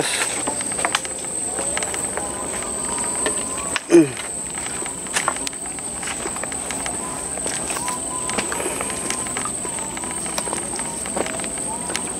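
Footsteps squelch slowly on wet mud.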